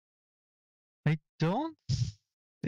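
A young man speaks briefly and with animation, close to a microphone.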